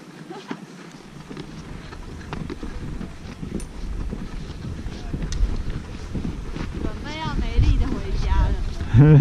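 Wind blows and rumbles outdoors, growing stronger.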